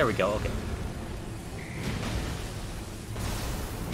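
A magical burst hums and crackles.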